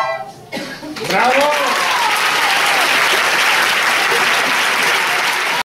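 A crowd of children cheers and shouts loudly in a large room.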